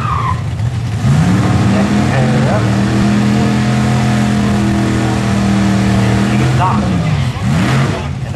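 A car engine revs loudly and holds a steady roar, then drops away.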